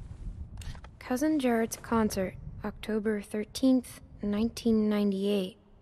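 A young girl reads out softly.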